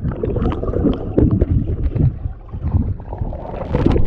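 Bubbles gurgle and rumble underwater.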